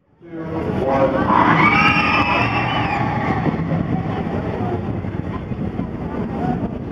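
A roller coaster train rumbles and clatters along its track nearby.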